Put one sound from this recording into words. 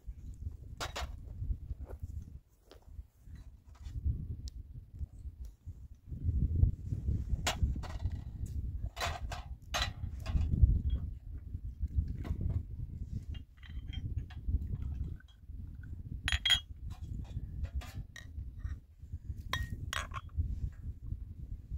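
Metal cups and a tray clink as they are handled.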